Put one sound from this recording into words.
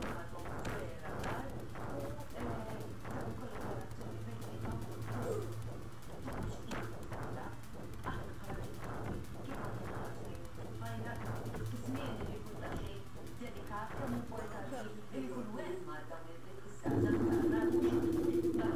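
Arcade game music plays with a steady beat.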